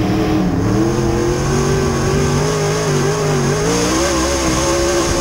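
A race car engine roars loudly up close, its pitch rising and falling with the throttle.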